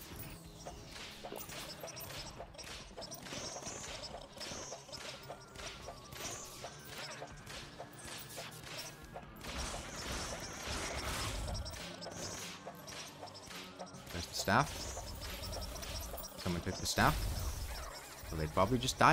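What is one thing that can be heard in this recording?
Game weapons fire in rapid, crackling bursts.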